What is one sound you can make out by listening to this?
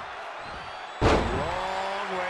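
A heavy body slams down hard onto a wrestling ring.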